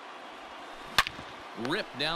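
A wooden bat cracks against a baseball.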